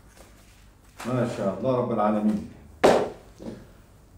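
A second middle-aged man speaks loudly, close by.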